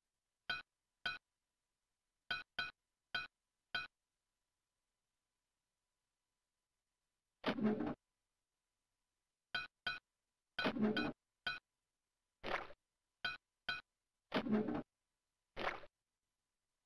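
Short electronic blips sound as coins are picked up in a game.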